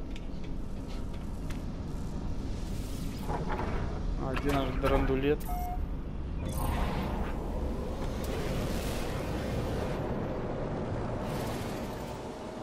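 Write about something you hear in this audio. A spacecraft engine rumbles steadily and swells as it takes off.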